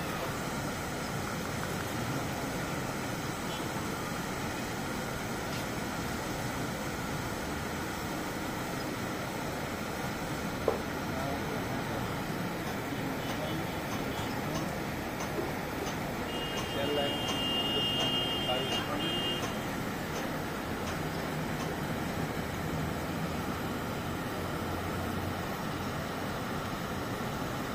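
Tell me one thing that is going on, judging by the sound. Muddy floodwater rushes and churns over rocks close by.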